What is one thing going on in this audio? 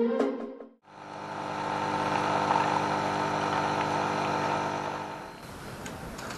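A coffee machine hums steadily as it brews.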